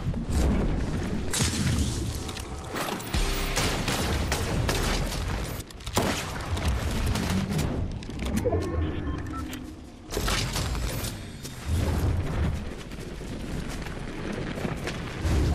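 Footsteps thud on the ground as a runner moves fast.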